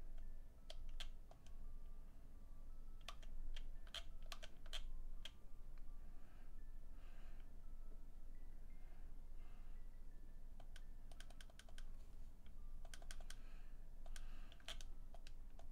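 Short electronic menu blips sound again and again.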